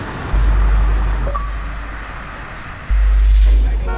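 A car crashes and scrapes along the ground.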